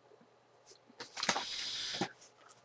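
A young man rustles and shuffles about close by.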